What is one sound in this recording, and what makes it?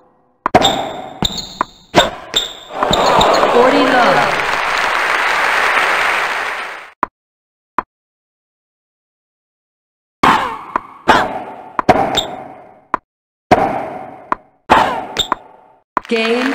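Tennis balls are struck with rackets in sharp, echoing thwacks.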